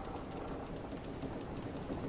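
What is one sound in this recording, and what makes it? Waves crash and churn against a boat's hull in the wind.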